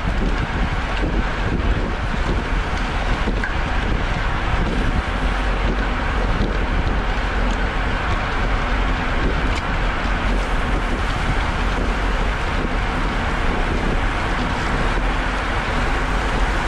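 Bicycle tyres hum steadily on wet pavement.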